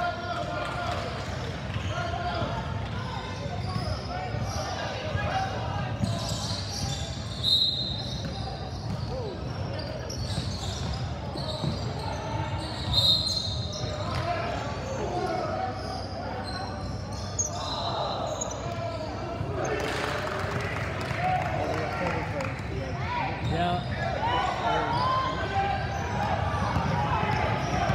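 Young girls call out to each other across an echoing gym.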